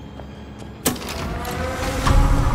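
A machine starts whirring and rumbling.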